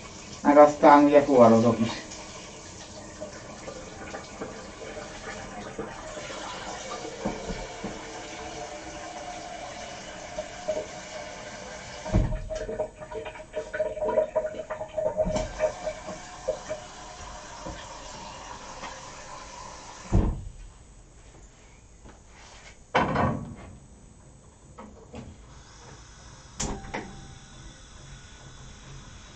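A man clatters dishes and utensils at a counter nearby.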